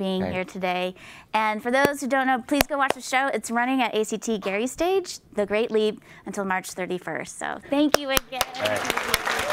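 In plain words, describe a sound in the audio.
A woman speaks warmly through a microphone.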